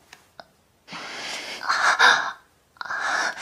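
A young woman cries out loudly in pain.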